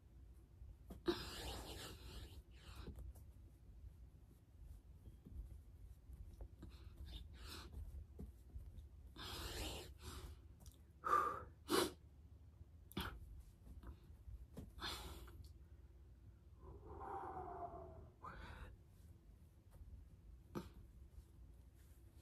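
A young woman breathes heavily in short bursts.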